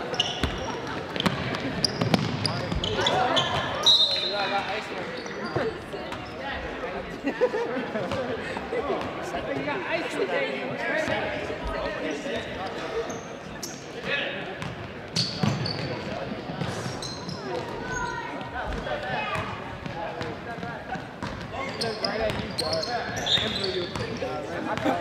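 A crowd murmurs and calls out in an echoing hall.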